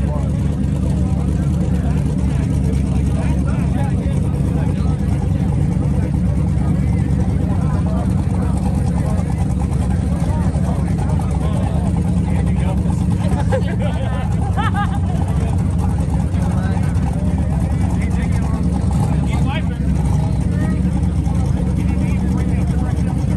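A car engine idles loudly with a deep rumble.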